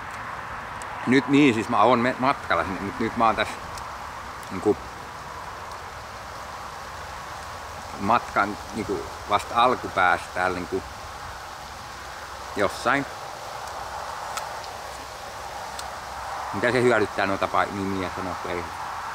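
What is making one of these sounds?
A man talks calmly and close by, outdoors.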